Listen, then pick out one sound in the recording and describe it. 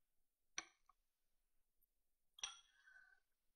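A china cup clinks softly on a saucer.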